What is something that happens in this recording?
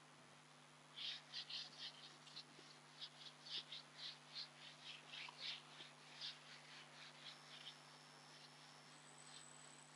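A board eraser rubs and squeaks across a whiteboard.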